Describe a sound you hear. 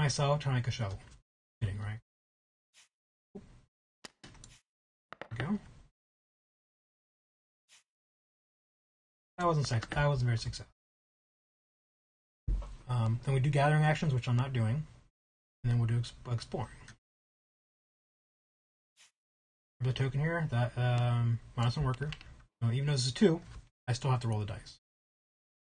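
A man talks calmly and close to a microphone, in bursts with pauses.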